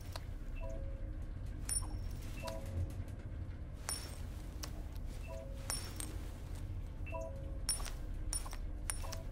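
An elevator hums steadily.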